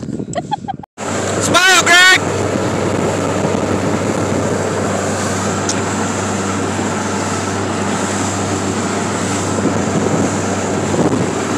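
A motorboat engine drones at speed.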